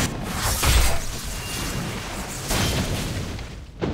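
Flames crackle nearby.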